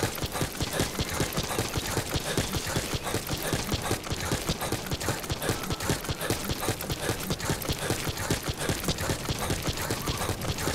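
Footsteps run quickly over dry gravel.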